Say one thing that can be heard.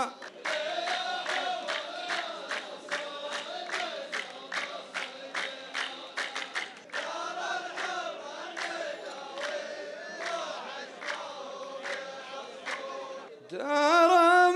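A large group of men sing together in chorus.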